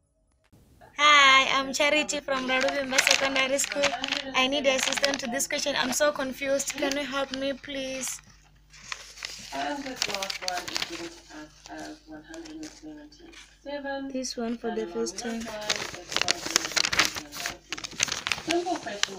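A young woman speaks with animation through a phone microphone.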